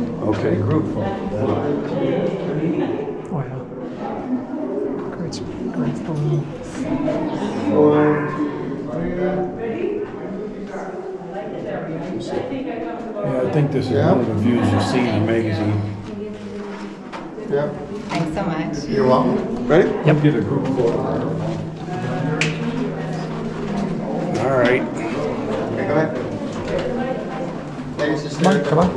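Several people talk with one another nearby, their voices echoing.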